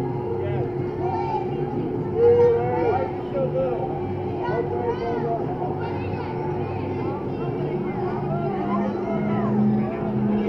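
A ride's motor hums steadily as it lifts.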